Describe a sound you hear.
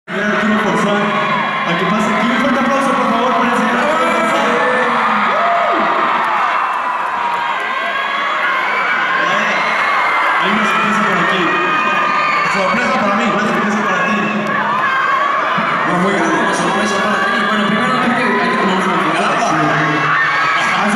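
A young man talks into a microphone over loudspeakers in a large echoing hall.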